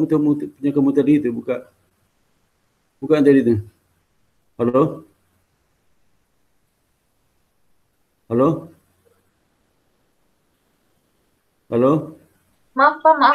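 A middle-aged man speaks calmly in short bursts over an online call, with long pauses.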